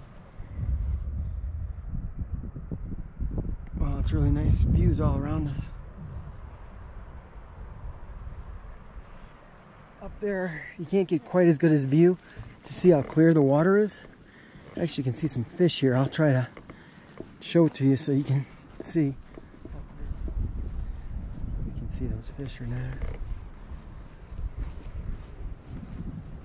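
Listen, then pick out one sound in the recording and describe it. Wind gusts across an open mountainside.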